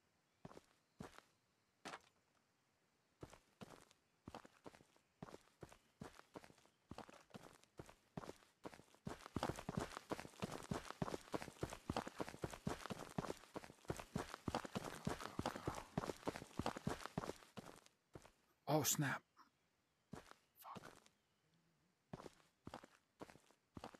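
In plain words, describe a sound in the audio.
Footsteps crunch on dry dirt, speeding up into a run and then slowing again.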